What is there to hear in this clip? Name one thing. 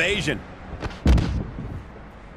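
A heavy body slams onto a hard floor with a loud thud.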